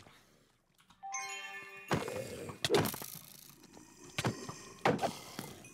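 A creature squeals as it is struck.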